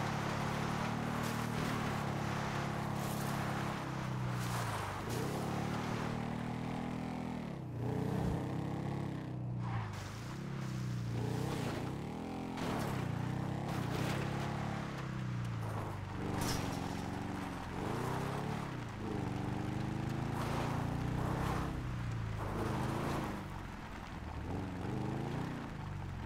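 Tyres crunch over dirt and gravel.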